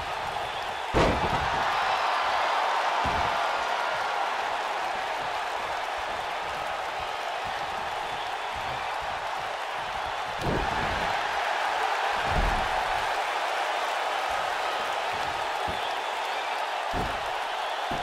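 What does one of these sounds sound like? A heavy body slams onto a wrestling mat with loud thuds.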